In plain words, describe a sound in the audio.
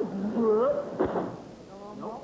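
A wrestler's body thuds onto the ring mat.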